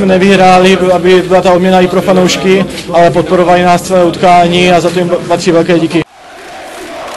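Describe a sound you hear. A large crowd chants and sings in unison in a stadium.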